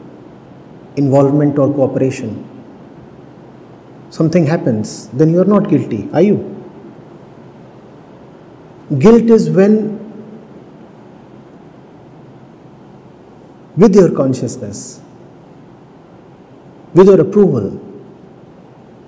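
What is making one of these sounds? A middle-aged man speaks calmly into a microphone, in short phrases with long pauses.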